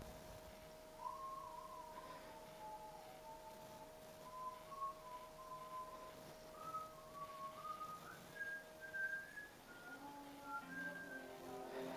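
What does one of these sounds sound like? Soft, gentle menu music plays from a television speaker.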